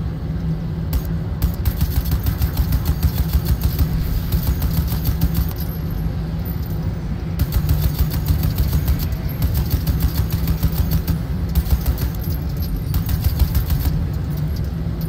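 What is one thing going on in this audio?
A mounted machine gun fires in rapid bursts.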